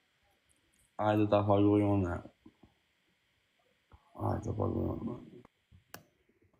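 A young man speaks casually over an online call.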